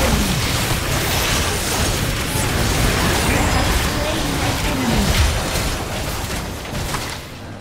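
Spell blasts and clashing effects burst rapidly in a busy game battle.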